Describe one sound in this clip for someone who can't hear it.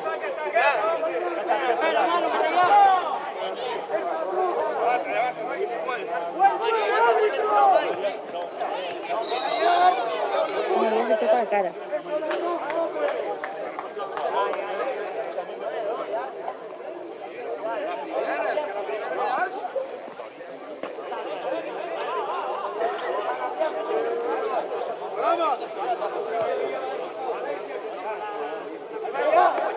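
Young men shout and call to one another outdoors, some distance away.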